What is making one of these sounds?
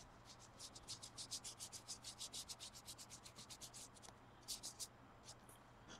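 A brush scratches rapidly against a hard curved surface.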